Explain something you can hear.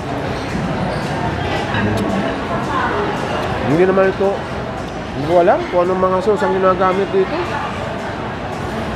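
People chatter in the background of a busy room.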